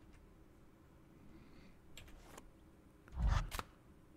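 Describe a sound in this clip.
A book snaps shut.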